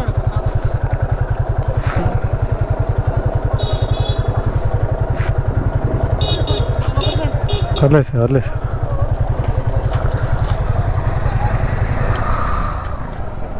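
A motorcycle engine idles with a steady, close throb.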